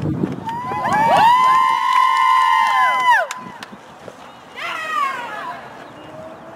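A group of young women cheer and shout together outdoors.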